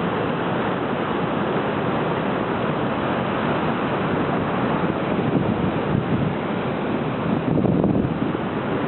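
Wind blows loudly outdoors.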